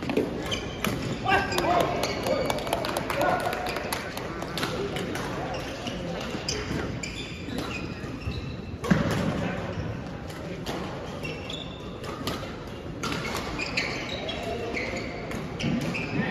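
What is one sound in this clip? Young men talk and call out across the hall.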